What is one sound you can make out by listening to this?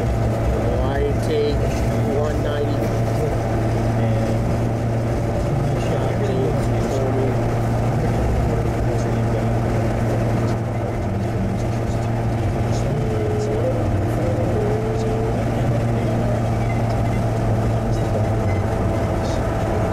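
Tyres roar steadily on the road.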